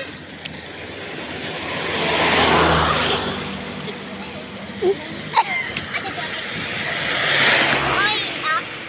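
Vehicles rush past on a road nearby, swelling and fading.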